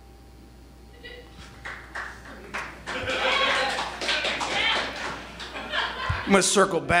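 A man speaks loudly and with animation in a large room.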